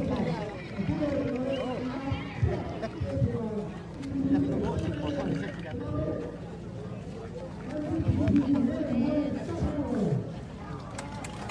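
Men talk and shout close by outdoors.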